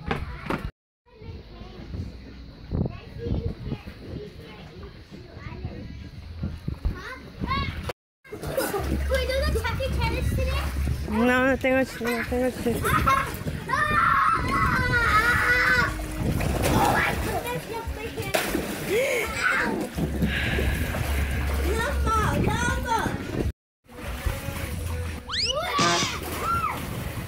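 Young boys shout and laugh excitedly nearby.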